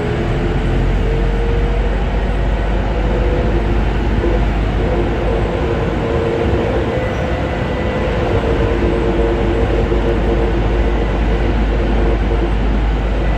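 A rubber-tyred metro train rumbles through a tunnel at speed.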